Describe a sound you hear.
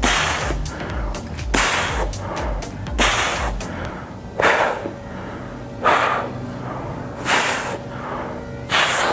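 A man exhales sharply and rhythmically as he exercises.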